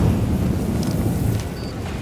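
An explosion booms and rumbles nearby.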